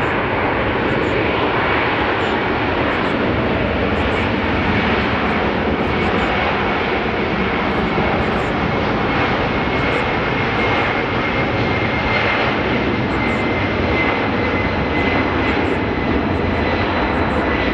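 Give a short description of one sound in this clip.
A jet airliner's engines roar steadily as it rolls along a runway.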